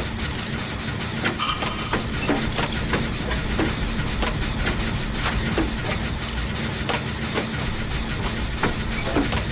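Metal parts clank and rattle as a machine is repaired.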